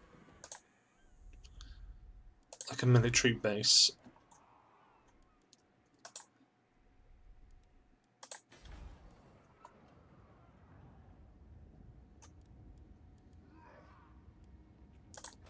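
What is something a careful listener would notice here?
Short interface clicks sound now and then.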